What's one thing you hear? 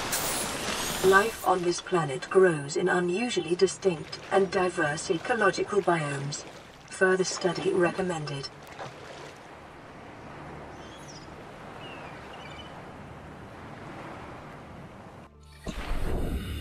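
Waves lap gently on open water.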